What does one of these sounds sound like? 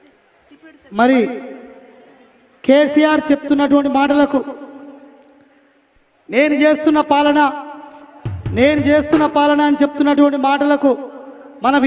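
A man sings loudly through loudspeakers.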